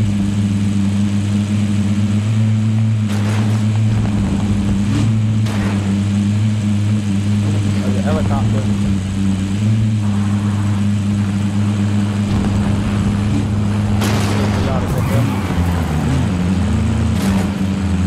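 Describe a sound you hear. A vehicle engine hums steadily as it drives.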